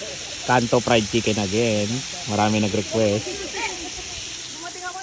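Oil sizzles and bubbles steadily as chicken deep-fries.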